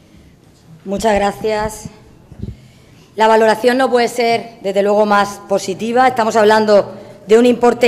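A woman speaks into a microphone through loudspeakers.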